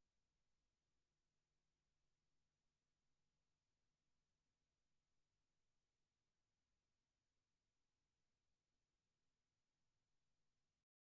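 A turntable spins a record with a faint low hum.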